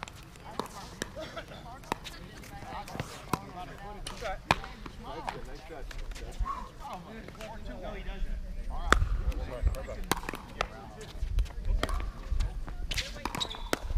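Paddles pop sharply against a plastic ball, over and over.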